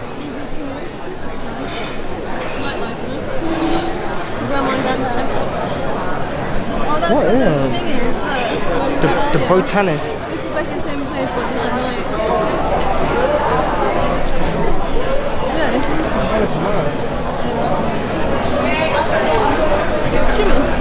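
A crowd of diners chatters in a lively murmur outdoors.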